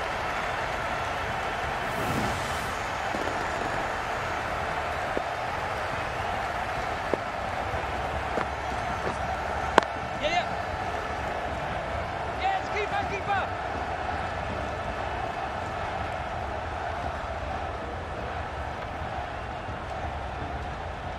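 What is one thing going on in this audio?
A large crowd murmurs and cheers steadily in a stadium.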